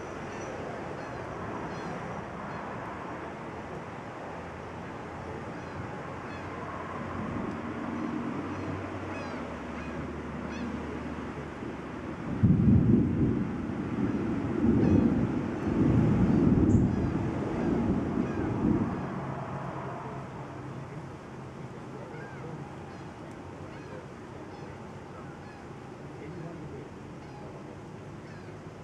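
Wind blows steadily outdoors and gusts hard for a few seconds.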